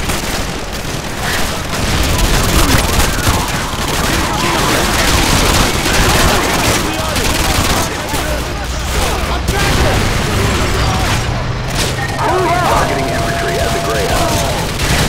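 Gunfire and explosions crackle steadily all around.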